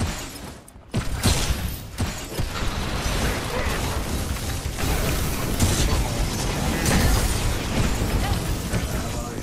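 Electric zaps and magical blasts crackle and boom in a fight.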